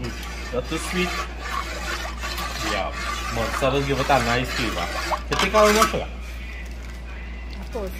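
A ladle sloshes and stirs liquid in a metal pot.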